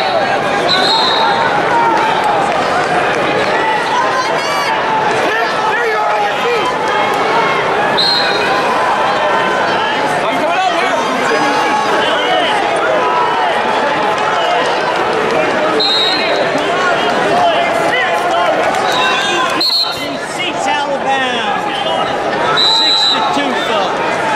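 A referee's whistle blows in short blasts.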